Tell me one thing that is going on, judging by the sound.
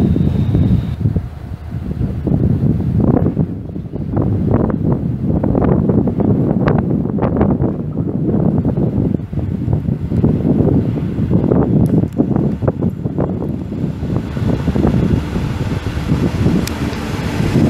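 A D445 diesel locomotive rumbles as it approaches.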